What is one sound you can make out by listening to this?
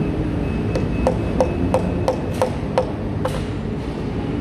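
A mallet taps sharply on wood in quick repeated blows.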